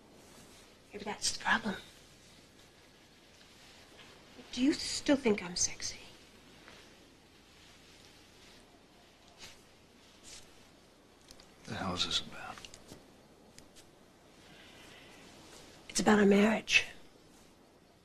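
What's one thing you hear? A woman speaks softly and briefly, close by.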